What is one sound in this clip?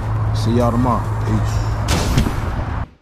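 A man speaks close up with animation.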